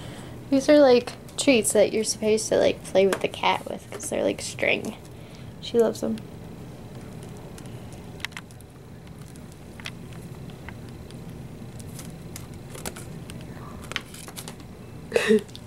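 A cat rustles crinkly plastic wrap.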